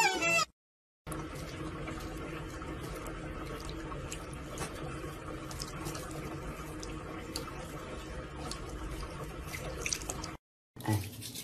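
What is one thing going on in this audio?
Water runs steadily from a tap.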